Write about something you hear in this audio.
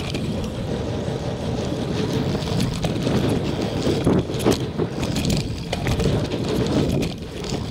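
Knobby mountain bike tyres roll over pavement and dirt.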